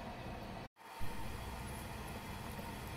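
Water bubbles at a rolling boil.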